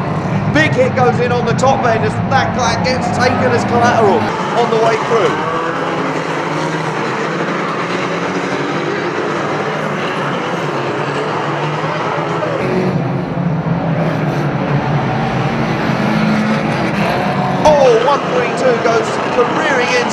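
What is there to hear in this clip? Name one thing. Car engines roar and rev loudly.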